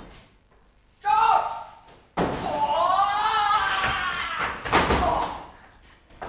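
A man shouts with animation in a large echoing room.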